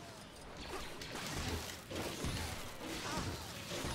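Blasters fire rapid laser shots.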